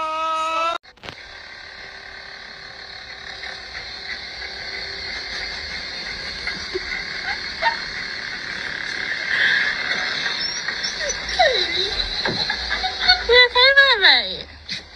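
A massage gun buzzes steadily.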